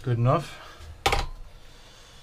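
A tool is set down on a hard desk with a sharp knock.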